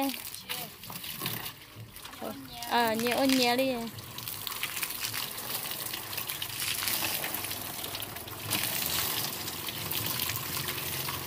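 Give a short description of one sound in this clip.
Water sprays from a hose and splashes against a metal surface.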